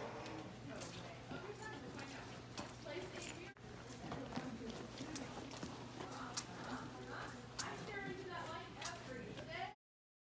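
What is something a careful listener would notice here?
Mops swish across a hard floor.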